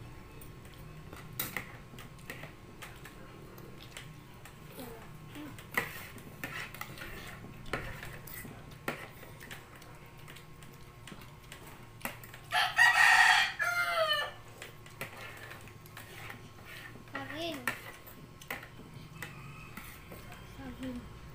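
Spoons and forks clink and scrape against plates.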